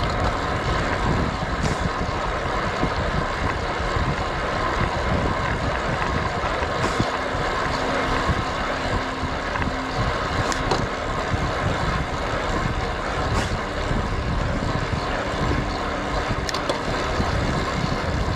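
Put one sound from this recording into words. Wind rushes past a road bike descending at speed.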